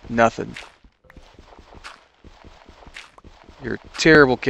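Footsteps tap softly on stone.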